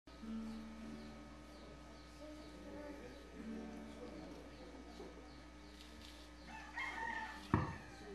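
A man strums a ukulele.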